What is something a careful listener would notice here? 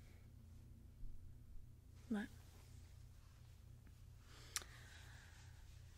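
A young woman speaks softly, very close to the microphone.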